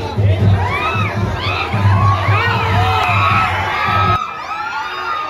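A crowd of young people shouts and cheers excitedly close by.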